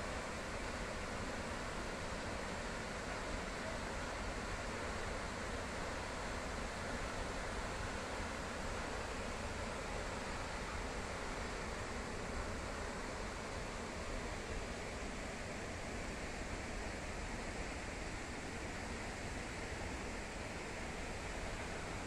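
A tall waterfall roars with a steady, heavy rush of falling water.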